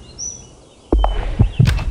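A golf club strikes a ball.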